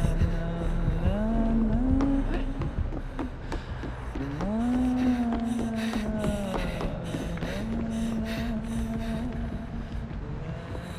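Footsteps thud quickly on wooden floorboards.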